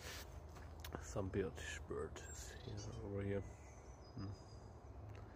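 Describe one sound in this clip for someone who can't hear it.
A young man speaks calmly and close by.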